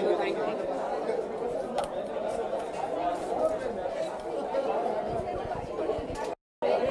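A crowd of people chatter loudly nearby.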